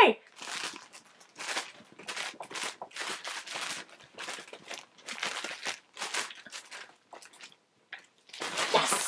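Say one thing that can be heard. Plastic packaging crinkles and rustles as it is shaken close by.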